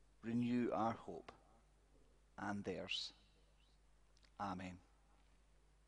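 A young man reads out slowly through a microphone, with long pauses.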